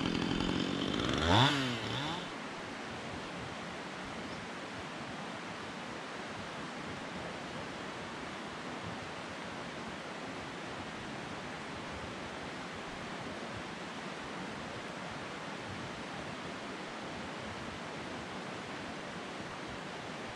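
A breeze rustles steadily through pine trees.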